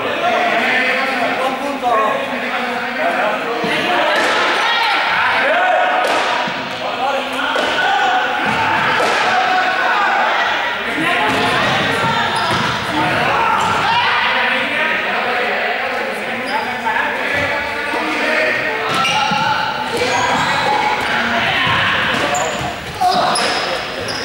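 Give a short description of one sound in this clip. Sneakers run and squeak on a hard floor.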